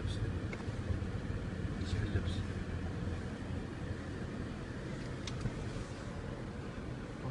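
A car drives along a road with a low, steady rumble.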